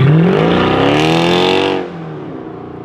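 A Mercedes C63 AMG V8 sedan accelerates hard and roars away.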